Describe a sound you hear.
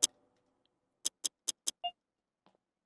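Short game menu clicks sound in quick succession.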